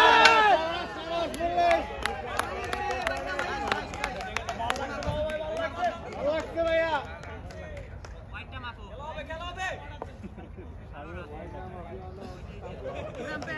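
Several men call out and shout to each other outdoors at a distance.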